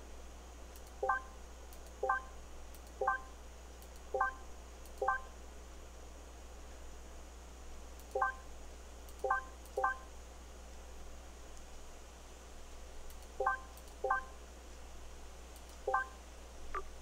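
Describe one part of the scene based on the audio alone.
Short electronic menu blips sound as tabs are switched, one after another.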